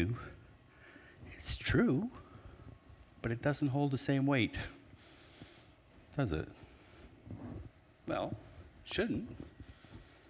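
A middle-aged man speaks calmly to an audience in a large echoing room.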